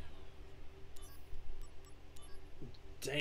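Game menu beeps click as options are chosen.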